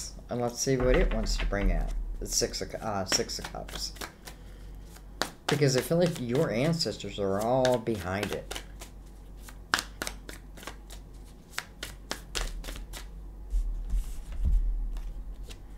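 Playing cards click and flick softly as they are shuffled by hand.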